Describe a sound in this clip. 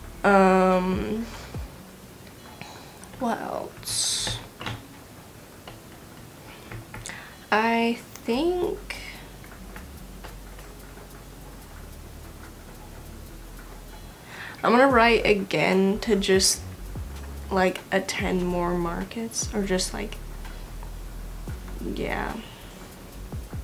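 A young woman talks casually into a nearby microphone, in short bursts.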